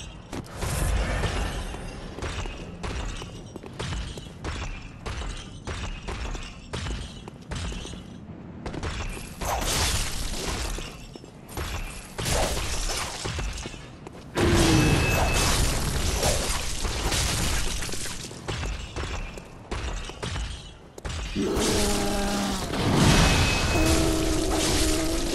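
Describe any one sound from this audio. A blade slashes and strikes a large creature in quick, repeated blows.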